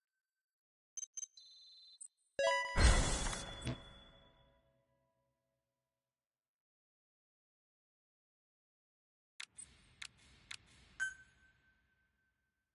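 Electronic menu chimes and clicks sound in short bursts.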